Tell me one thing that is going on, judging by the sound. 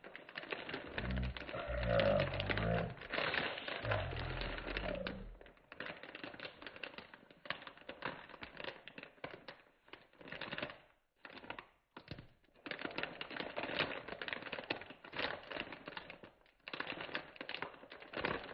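Plastic wrap crinkles and rustles under a hand.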